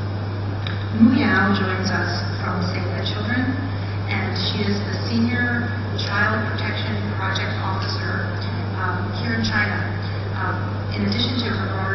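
A woman speaks calmly through a microphone and loudspeakers in a large hall.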